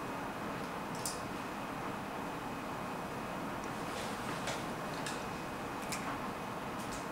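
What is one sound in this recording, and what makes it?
A chess piece taps down on a wooden board.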